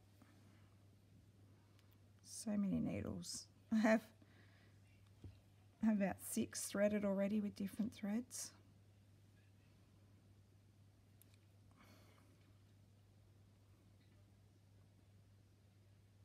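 A needle and thread pull softly through cloth.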